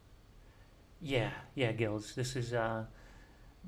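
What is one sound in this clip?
A man speaks briefly and calmly into a nearby microphone.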